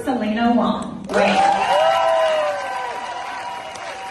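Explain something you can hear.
Young women shriek and cheer close by.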